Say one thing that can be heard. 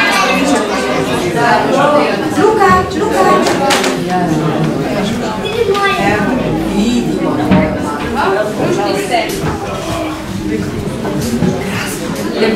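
Young children sing together.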